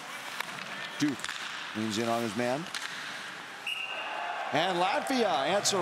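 Young men shout to each other across an echoing rink.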